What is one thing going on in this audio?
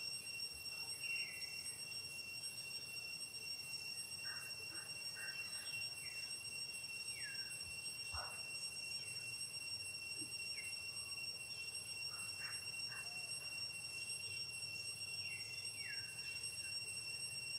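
A baby monkey squeaks and whimpers close by.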